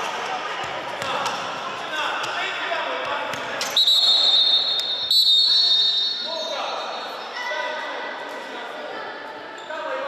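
Young boys call out to each other in an echoing hall.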